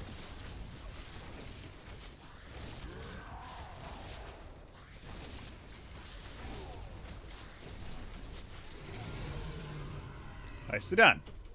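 Video game combat effects whoosh and crackle.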